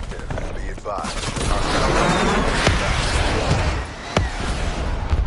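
An explosion booms and roars loudly.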